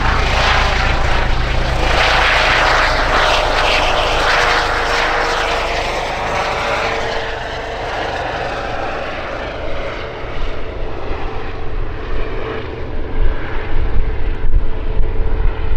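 A twin-turbine EC135 helicopter climbs away, with thumping rotor blades and a whining shrouded tail rotor.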